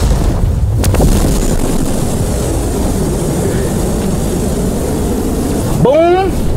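A huge explosion booms and rumbles on.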